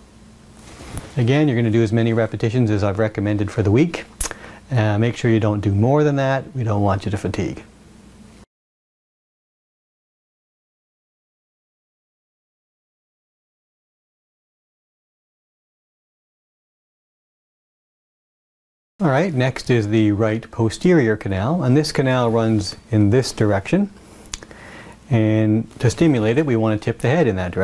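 A middle-aged man talks calmly and clearly into a close microphone.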